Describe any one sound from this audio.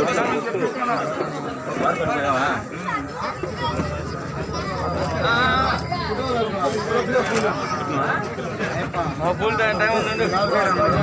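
A crowd of men talk over one another nearby, outdoors.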